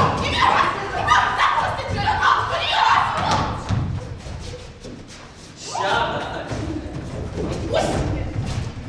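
Feet stamp and shuffle on a wooden stage.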